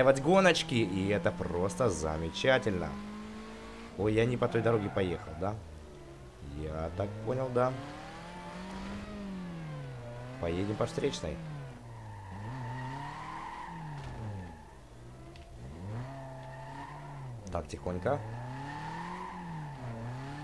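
A car engine roars, revving up and down as the gears shift.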